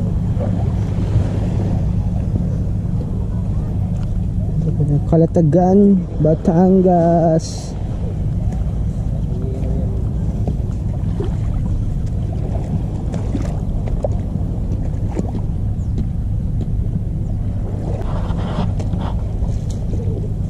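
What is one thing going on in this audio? Wind blows steadily and rumbles across the shore.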